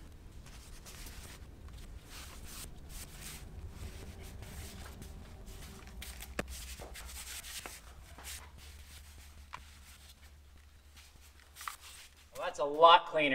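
A rag rubs and scrubs against a metal panel.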